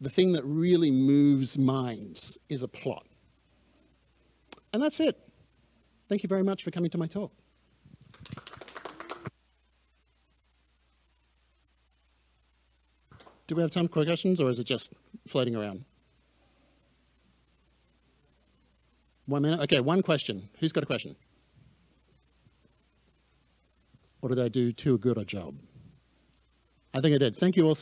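A man speaks calmly into a microphone, in bursts with long pauses.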